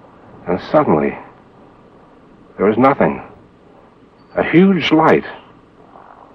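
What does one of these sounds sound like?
A middle-aged man speaks calmly and close by in short phrases.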